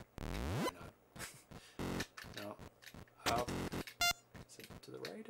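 Retro video game sound effects beep and blip.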